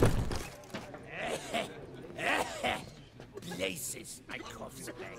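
A man speaks hoarsely nearby.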